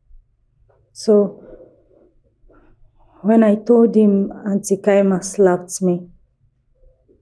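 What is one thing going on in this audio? A young woman speaks earnestly up close.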